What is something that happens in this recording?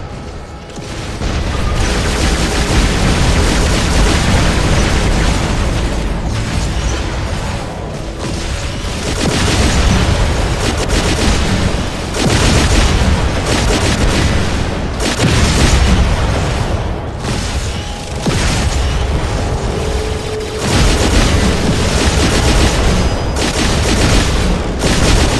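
Heavy gunfire rattles and booms in rapid bursts.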